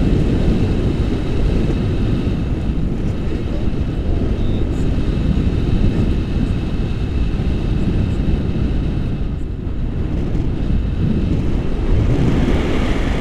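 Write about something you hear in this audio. Strong wind rushes and buffets loudly past the microphone.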